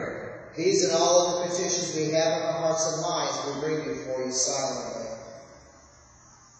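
A man sings through a microphone in an echoing hall.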